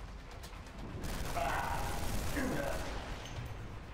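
Energy guns fire a crackling electric burst.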